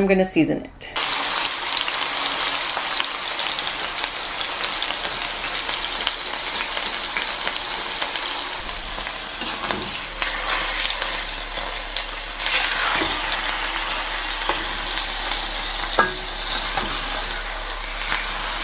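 Meat sizzles loudly in hot oil in a frying pan.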